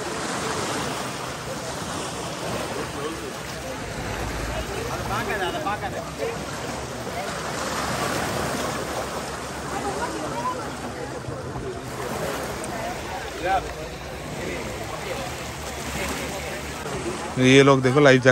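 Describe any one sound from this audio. Many people chatter outdoors.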